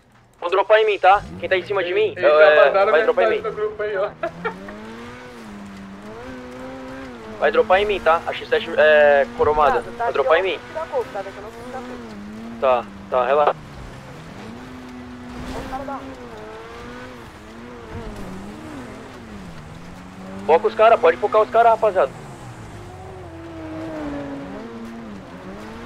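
A sports car engine hums and revs up and down.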